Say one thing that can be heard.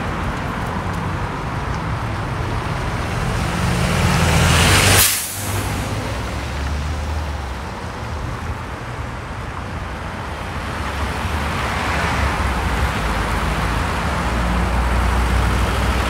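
Steady city traffic rumbles along a street outdoors.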